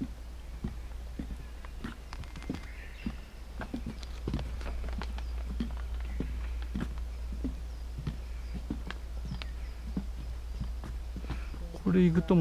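Footsteps thud steadily on a wooden boardwalk.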